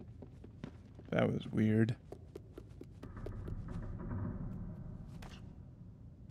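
Small footsteps patter across a wooden floor.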